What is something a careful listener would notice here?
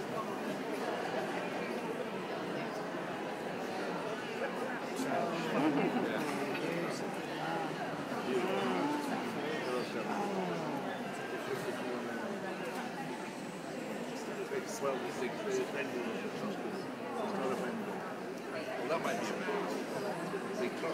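A crowd murmurs in the background of a large hall.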